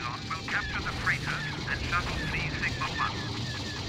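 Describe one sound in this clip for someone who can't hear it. Laser cannons fire in quick bursts.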